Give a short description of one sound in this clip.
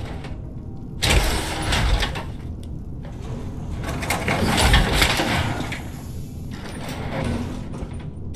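A heavy metal suit hisses and clanks as it opens.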